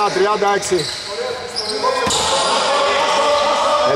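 A basketball bounces on a wooden floor with an echo.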